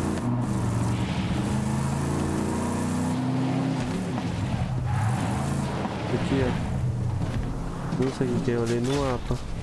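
A buggy engine hums and roars steadily.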